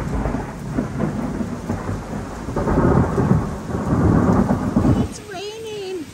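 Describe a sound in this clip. Thunder rumbles loudly overhead and then fades.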